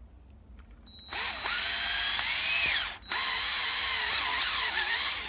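A drill whines as a step bit bores into plastic.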